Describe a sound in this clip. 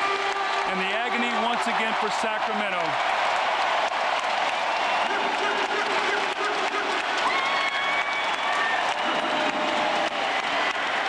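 A large crowd cheers and roars loudly in a big arena.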